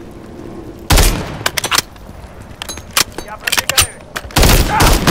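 A rifle's parts click and clack as it is handled.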